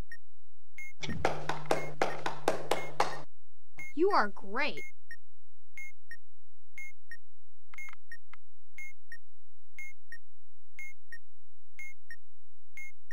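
A timer beeps steadily about once a second.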